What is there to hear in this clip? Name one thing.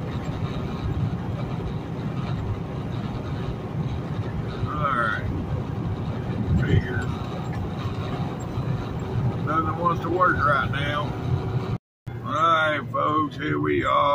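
Truck tyres rumble on the road.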